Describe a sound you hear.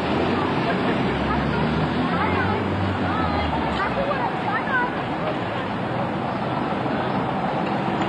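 Steady traffic noise fills a busy street outdoors.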